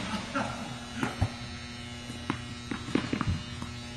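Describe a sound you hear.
Tennis balls bounce on a hard court.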